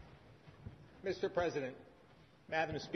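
A man speaks through a microphone in a hall.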